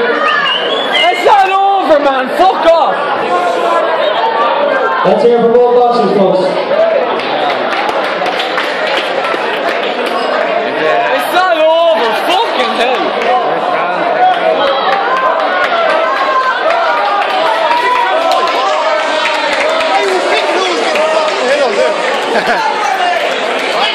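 A crowd of men and women chatters loudly in a large echoing hall.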